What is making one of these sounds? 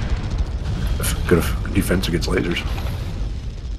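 Heavy weapons fire in rapid bursts with loud blasts.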